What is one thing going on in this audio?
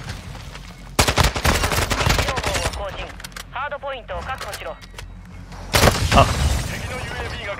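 Rapid gunfire bursts loudly in quick volleys.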